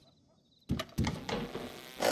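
A wooden cabinet door creaks and knocks shut.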